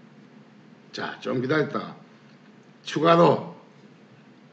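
A middle-aged man speaks calmly into a microphone in short phrases.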